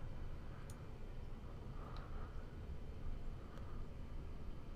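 Soft magical chimes ring out now and then.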